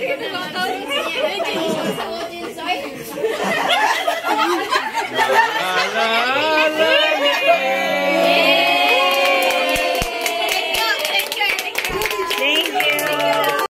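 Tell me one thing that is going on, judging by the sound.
A group of women and girls chatter and cheer excitedly close by.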